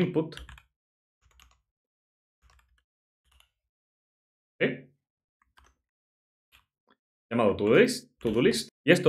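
A man speaks calmly and closely into a microphone, pausing between phrases.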